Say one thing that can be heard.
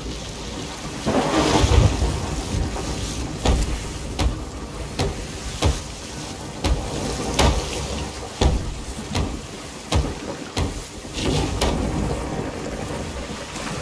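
Water gushes and sprays through holes in a wooden hull.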